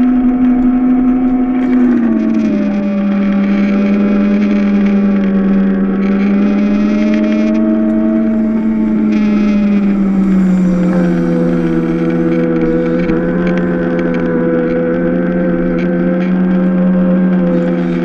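A small kart engine whines steadily up close, rising and falling in pitch.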